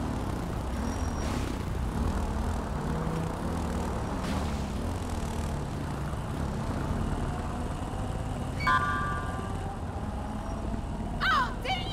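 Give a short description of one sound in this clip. Motorcycle engines idle with a low, steady rumble.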